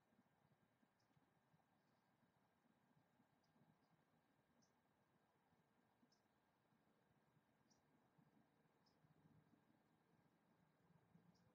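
A small bird chirps with short, high squeaks now and then.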